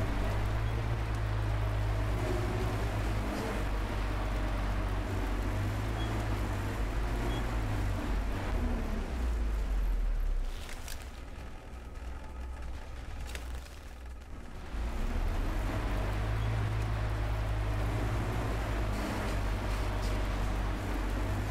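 Tyres rattle and crunch over rough ground.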